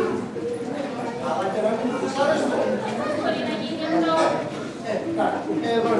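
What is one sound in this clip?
A middle-aged man speaks in a hall.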